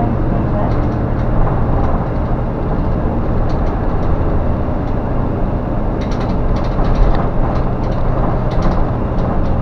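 Loose parts rattle and tick inside the moving bus.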